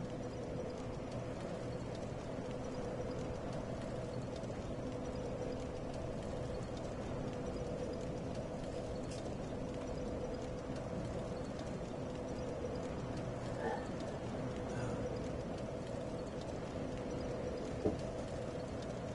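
A fire crackles softly nearby.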